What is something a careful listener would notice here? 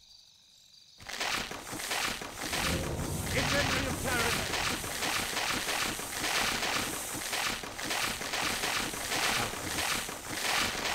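Many weapons clash and clatter in a busy battle.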